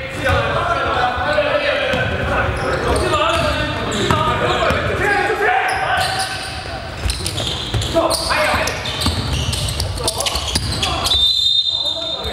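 Basketballs bounce with hollow thuds on a wooden floor in an echoing hall.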